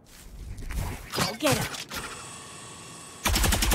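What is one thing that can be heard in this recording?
A video game smoke ability bursts open with a loud whoosh.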